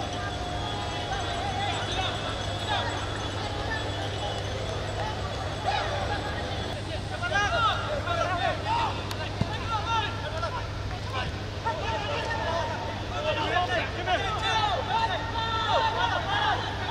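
A crowd shouts and cheers from the stands of an open stadium.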